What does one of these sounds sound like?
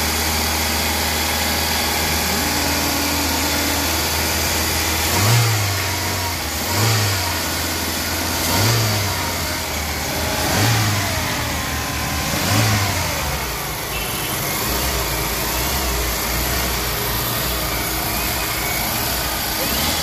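A car engine idles with a steady hum.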